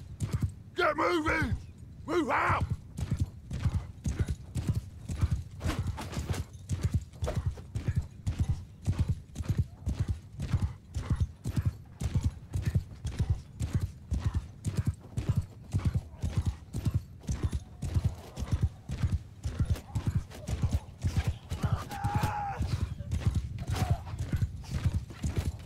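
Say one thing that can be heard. A horse gallops with rapid, steady hoofbeats on soft ground.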